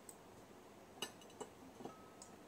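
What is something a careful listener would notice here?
A ceramic plate clinks as it is set down.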